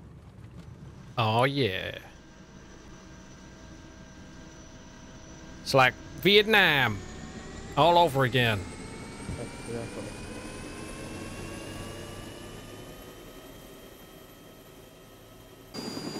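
A helicopter engine whines and slowly rises in pitch as it starts up.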